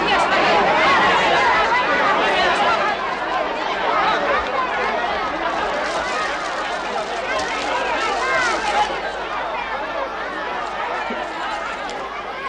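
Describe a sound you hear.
A large crowd of men and women chatters and shouts all around.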